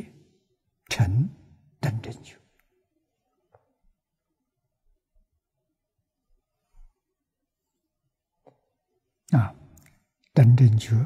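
An elderly man speaks slowly and calmly into a microphone, with long pauses.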